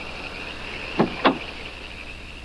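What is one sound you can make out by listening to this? A car door opens.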